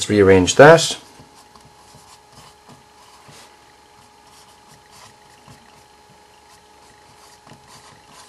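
A felt-tip marker squeaks and scratches on paper close by.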